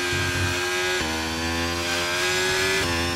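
A racing car engine's pitch drops suddenly as it shifts gear.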